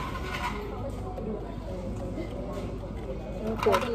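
Coffee pours over ice in a cup.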